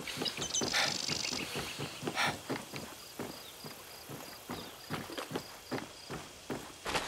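Footsteps thud steadily on hollow wooden planks.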